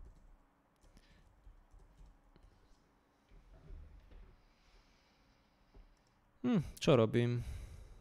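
Keyboard keys click.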